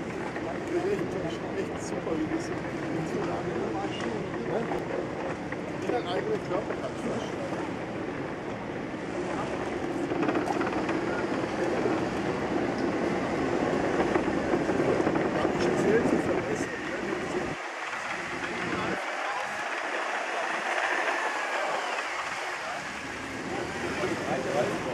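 Wind blusters outdoors.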